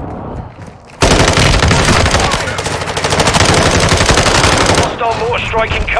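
A rifle fires in rapid loud bursts.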